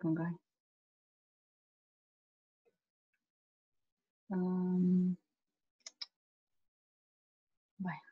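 A woman speaks in short bursts over an online call, heard through a microphone.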